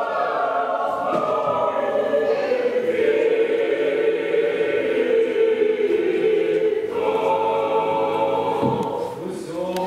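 A group of men chant together in a large echoing hall.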